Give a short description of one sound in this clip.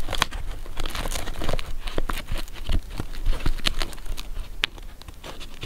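Paper pages rustle and flutter as they are flipped by hand, close by.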